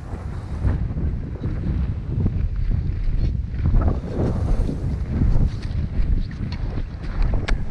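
Wind gusts and buffets outdoors.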